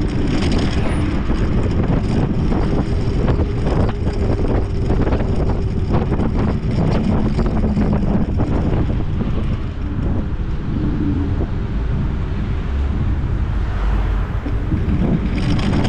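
Wind buffets the microphone loudly and steadily.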